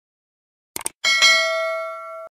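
A small bell chimes and slowly rings out.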